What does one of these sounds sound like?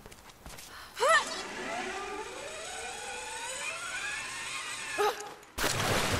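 A metal hook whirs as it slides down a taut rope.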